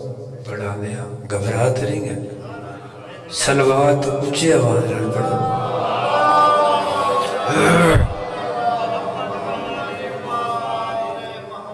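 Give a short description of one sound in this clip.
A middle-aged man sings and recites loudly through a microphone, with a strong echo.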